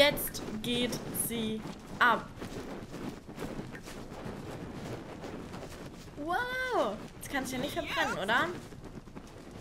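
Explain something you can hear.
A young woman talks and exclaims with animation into a microphone.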